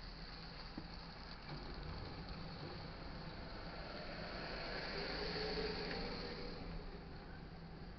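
Cars drive past close by on the road.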